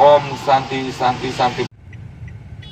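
A man speaks loudly into a radio microphone close by.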